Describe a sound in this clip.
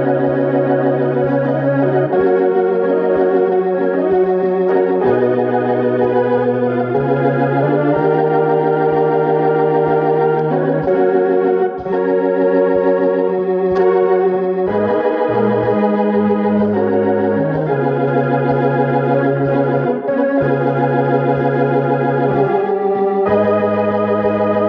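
A man plays chords on a piano, close by.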